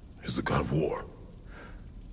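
A deep-voiced man speaks gruffly.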